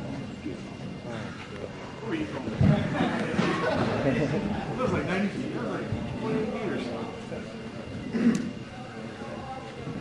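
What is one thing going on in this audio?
A man talks casually in a large echoing hall.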